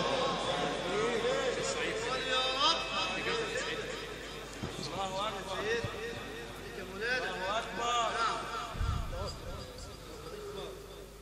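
A man chants melodically into a microphone, heard through loudspeakers in a reverberant hall.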